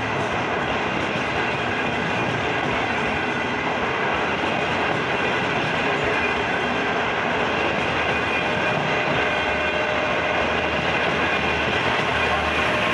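A passenger train rushes past close by with a loud, steady roar.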